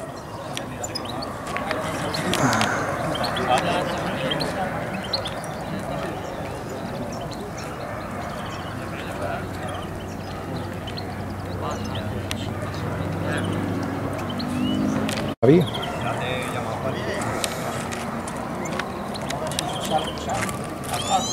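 Elderly men talk calmly close by.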